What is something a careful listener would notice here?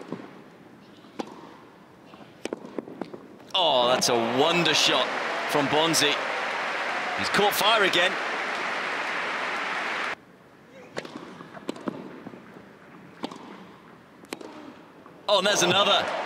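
A tennis ball is struck sharply by rackets in a rally.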